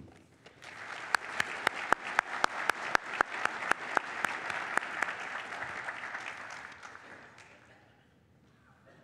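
An audience applauds in a large hall, and the applause fades out.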